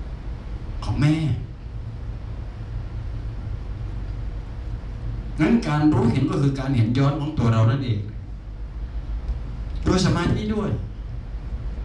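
An elderly man speaks calmly through a headset microphone, in short bursts with pauses.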